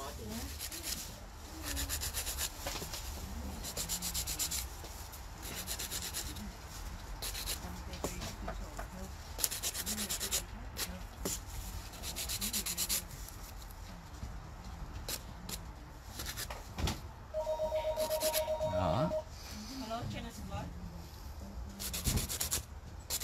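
A nail file rasps back and forth against a fingernail in short bursts.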